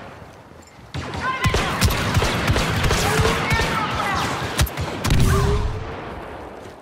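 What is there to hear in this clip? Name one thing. Blasters fire in rapid bursts.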